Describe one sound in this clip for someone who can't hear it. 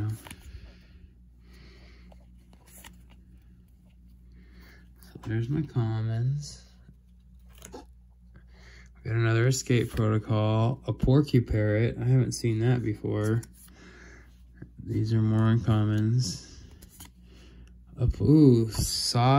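Playing cards slide and rustle against each other in a hand.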